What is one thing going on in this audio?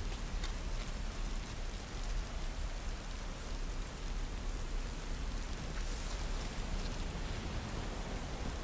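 Footsteps tread on wet ground and stone steps.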